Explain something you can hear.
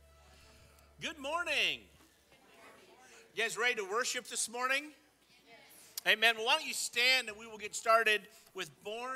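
A man speaks steadily through a microphone in a large echoing hall.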